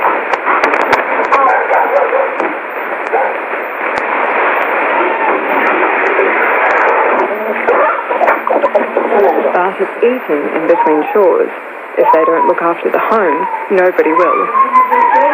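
A radio's loudspeaker crackles and pops.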